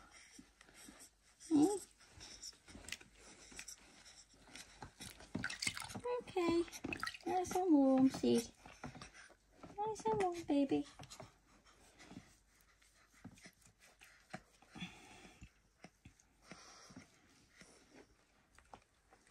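Water splashes and trickles gently in a small tub.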